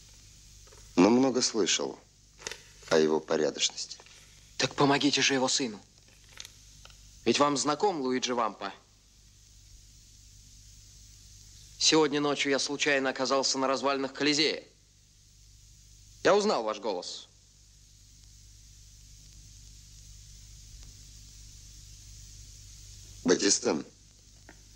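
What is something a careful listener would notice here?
Two men hold a calm, close conversation.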